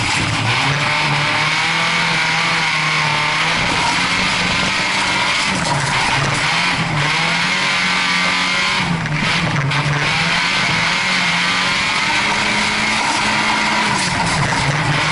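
A rally car engine roars loudly, revving up and down as gears shift.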